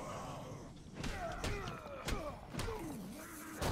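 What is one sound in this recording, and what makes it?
Heavy punches land with thuds.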